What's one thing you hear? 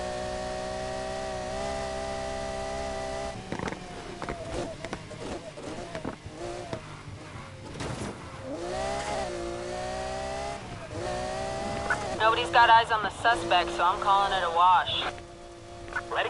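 A sports car engine roars at high revs, shifting through gears.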